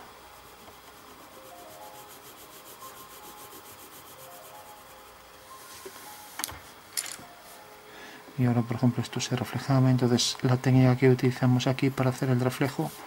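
A pencil scratches across paper.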